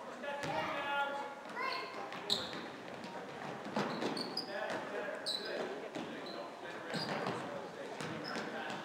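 Girls shout and call out across a large echoing gym.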